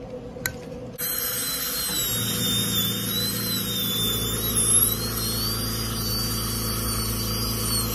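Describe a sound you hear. A dental drill whines at a high pitch.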